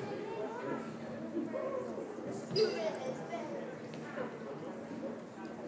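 Young women talk to each other nearby.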